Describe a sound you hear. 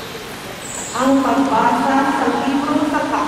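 An elderly woman reads out through a microphone in a large echoing hall.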